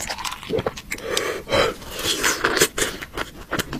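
A young man speaks calmly close to a microphone.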